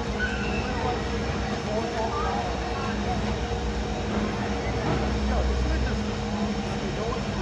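A roller coaster train rumbles and clatters steadily along its track.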